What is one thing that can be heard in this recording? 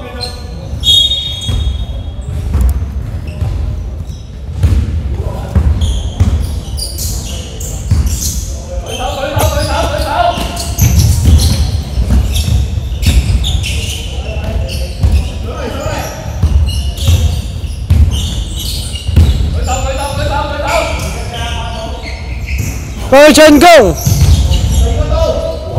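A basketball bounces repeatedly on a wooden floor in a large echoing hall.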